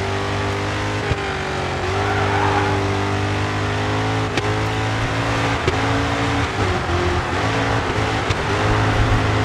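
A car engine briefly drops in pitch as gears shift.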